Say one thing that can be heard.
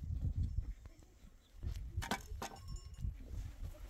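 A pick digs into stony soil.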